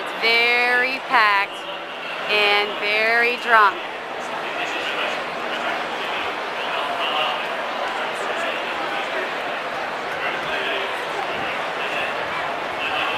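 A large outdoor crowd murmurs in the distance.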